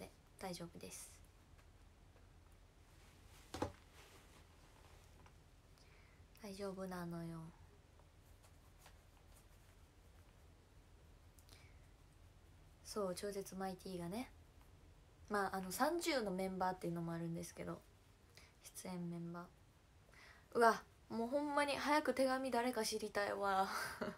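A young woman speaks calmly close to a microphone, in short bursts with pauses.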